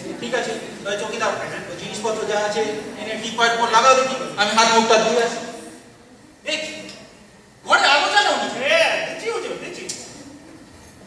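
Men speak loudly and with animation through microphones in a large echoing hall.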